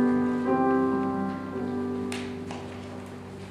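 A keyboard plays gentle notes that fade away.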